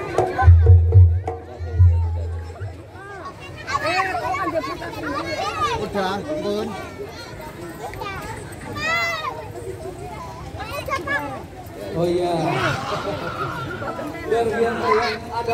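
Several young children chatter, shout and laugh close by outdoors.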